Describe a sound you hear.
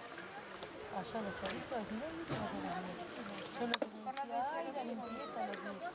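A child splashes in shallow water.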